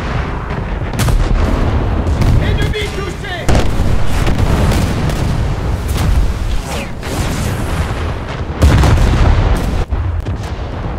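Heavy naval guns fire with deep booming blasts.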